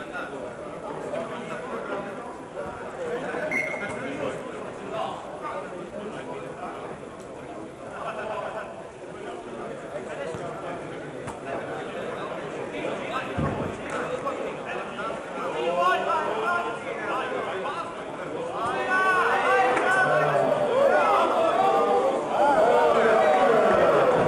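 A crowd of spectators chatters in a large hall.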